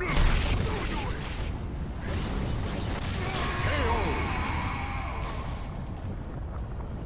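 A loud magical blast booms and rumbles.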